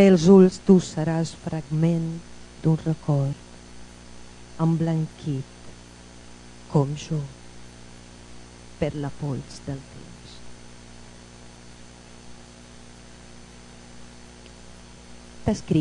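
A woman speaks with animation into a microphone, heard through a loudspeaker in a large room, with long pauses.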